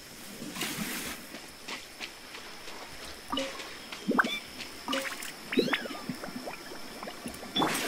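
Footsteps patter on wet ground.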